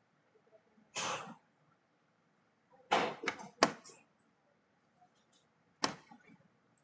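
Darts thud into a bristle dartboard.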